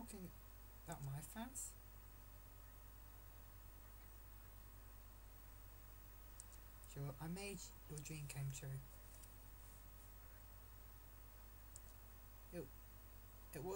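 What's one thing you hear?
A teenage boy speaks casually and quietly, close by.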